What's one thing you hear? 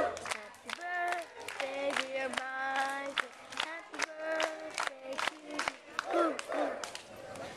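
A small group of people sings together outdoors.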